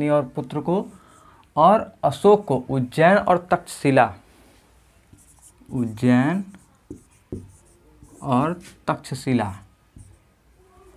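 A young man speaks clearly and calmly, as if explaining, close by.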